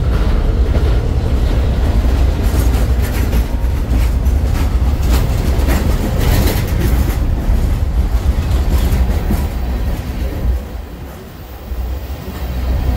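A freight train rumbles past close by.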